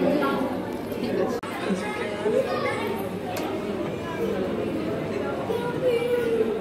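Several people talk quietly in the background.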